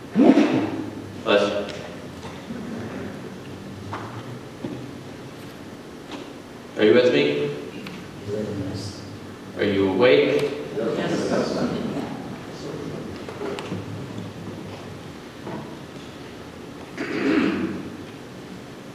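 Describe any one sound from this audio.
A woman speaks calmly through a microphone in a large echoing hall, with pauses between phrases.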